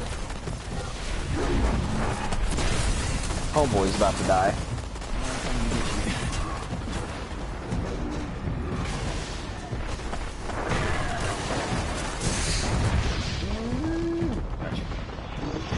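Gunfire from a game weapon rattles in rapid bursts.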